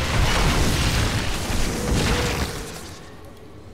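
Weapons fire and explosions crash in a noisy battle.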